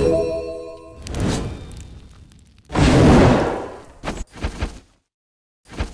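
A fiery blast roars with a loud, rumbling whoosh.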